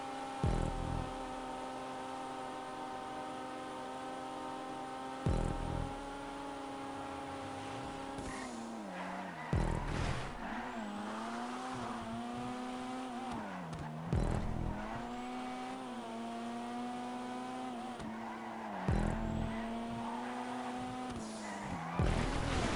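A car engine roars steadily at high speed, its pitch dipping and climbing again.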